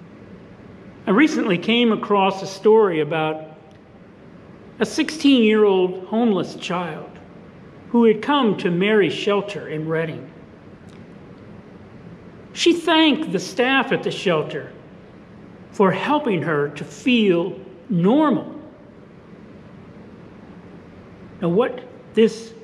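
An elderly man speaks calmly and steadily into a microphone, heard close in a slightly echoing room.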